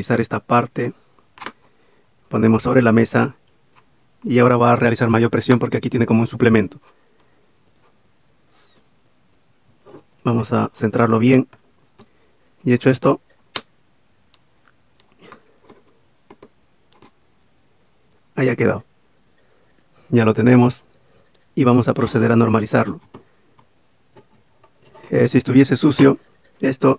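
Small plastic and metal parts click softly as they are handled.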